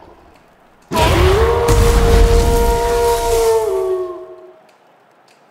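A magical energy blast whooshes with a rising hum.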